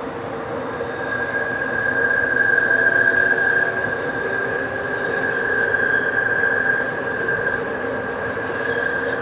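Train wheels squeal shrilly on the rails.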